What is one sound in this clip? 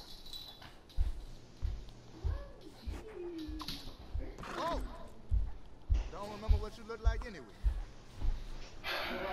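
A horse's hooves stamp and thud on wet ground.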